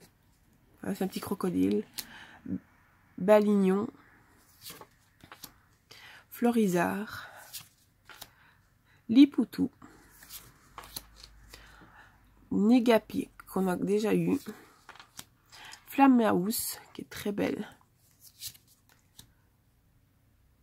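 Stiff playing cards rustle and slide against each other in hands.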